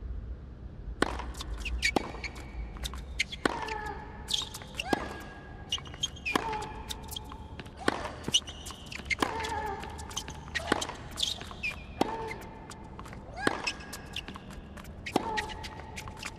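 A tennis ball is struck back and forth with sharp pops.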